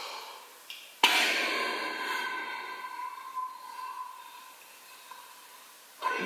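A man blows hard and steadily into a balloon.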